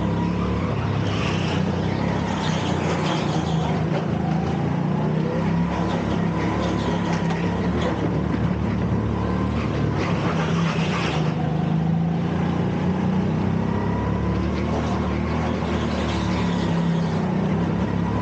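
Kart tyres squeal on the track in short bursts through the turns.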